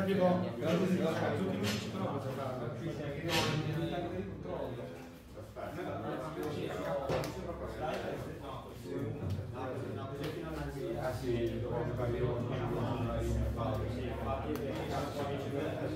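Playing cards slide and tap softly on a play mat.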